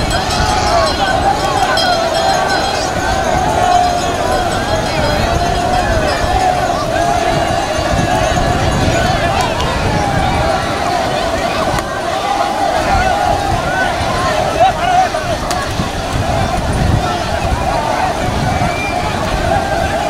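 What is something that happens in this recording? Water splashes as many people wade through a river.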